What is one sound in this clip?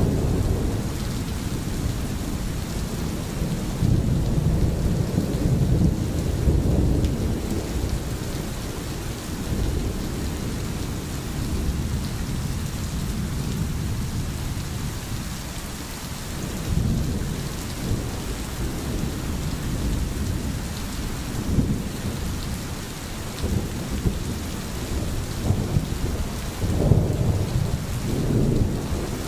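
A stream burbles and gurgles over stones.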